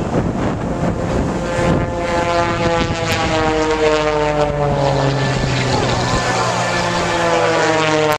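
Waves break on a shore.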